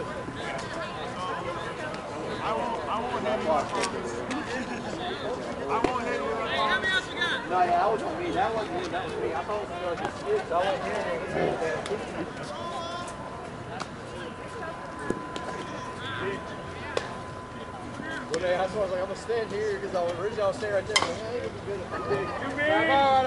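Several men talk and call out across an open outdoor field.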